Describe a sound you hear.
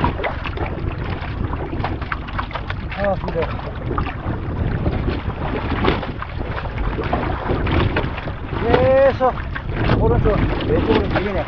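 Water splashes and laps against a board.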